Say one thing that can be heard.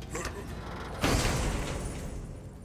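A heavy chest lid bangs open.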